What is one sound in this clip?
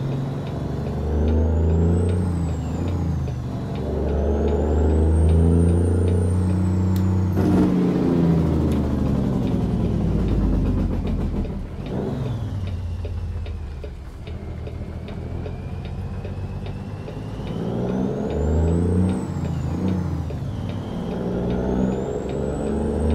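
A turn signal ticks steadily.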